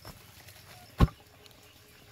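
A bamboo pole thuds into the ground.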